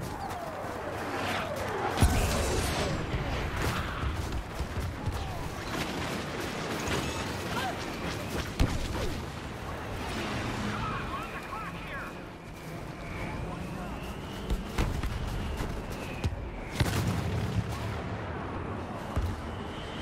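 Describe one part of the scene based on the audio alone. Laser blasts and explosions go off in a battle.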